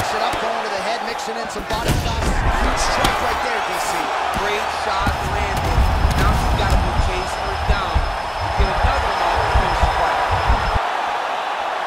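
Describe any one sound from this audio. Punches thud against a fighter's body.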